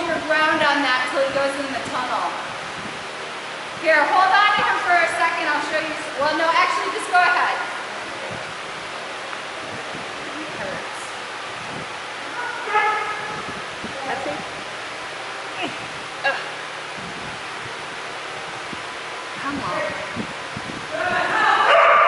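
A woman talks with animation in a large echoing hall.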